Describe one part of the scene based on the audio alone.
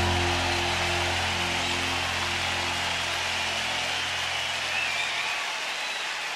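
A band's music rings out over loudspeakers and fades away.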